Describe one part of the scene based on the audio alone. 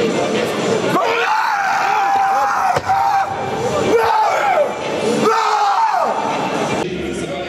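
A young man shouts loudly up close.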